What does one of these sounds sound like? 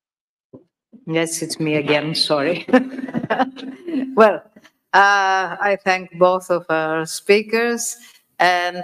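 A woman speaks clearly through a microphone.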